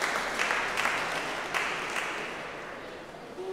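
Footsteps echo on stone steps in a large, reverberant hall.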